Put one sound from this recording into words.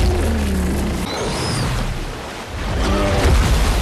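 Water splashes heavily as a bear charges through a shallow river.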